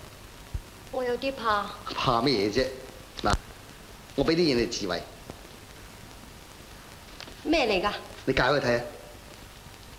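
A man speaks calmly and cheerfully.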